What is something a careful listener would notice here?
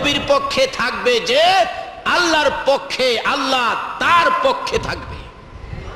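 A man preaches loudly and passionately into a microphone, his voice echoing.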